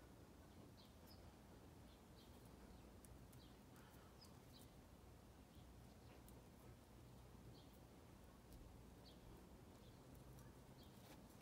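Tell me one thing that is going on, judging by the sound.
A knife scrapes and shaves wood with short, light strokes.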